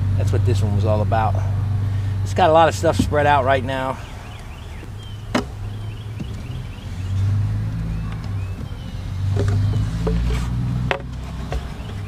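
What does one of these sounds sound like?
A wooden frame knocks and scrapes against a hive box.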